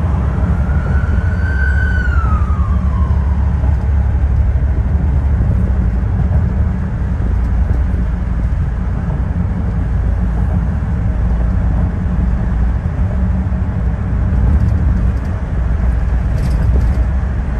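A car engine hums steadily with road rumble from inside a moving car.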